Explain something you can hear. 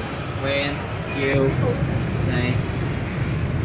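Young women talk and call out close by.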